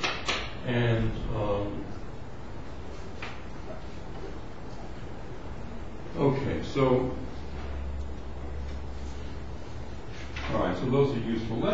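An elderly man lectures calmly in a room with slight echo, speaking in short phrases with pauses.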